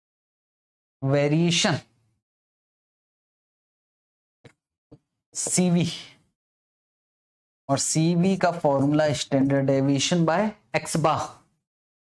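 A man speaks clearly and calmly close to a microphone, in short bursts with pauses.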